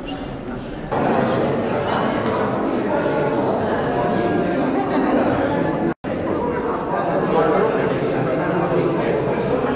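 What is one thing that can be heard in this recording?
A woman speaks with animation to a group.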